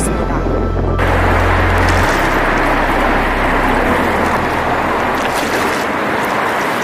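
Water laps against stone steps.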